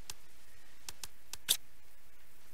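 Short game menu clicks tick several times.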